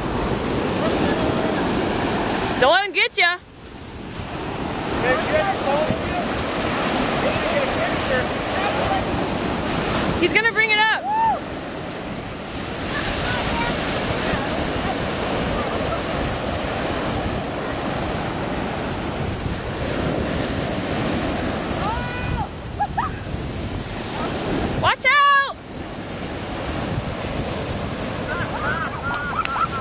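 Waves break and wash up on a beach.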